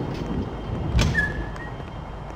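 A heavy door swings open with a thud.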